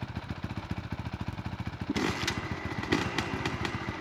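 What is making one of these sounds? A man stomps on a dirt bike's kick-starter.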